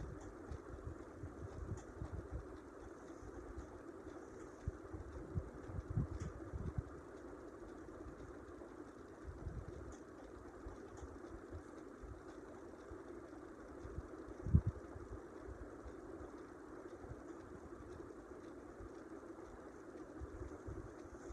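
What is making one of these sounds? A person breathes slowly and softly while asleep, close by.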